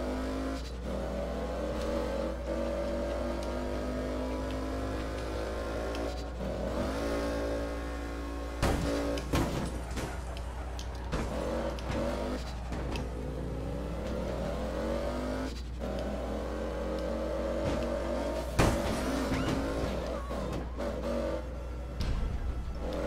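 A car engine revs steadily, rising and falling in pitch.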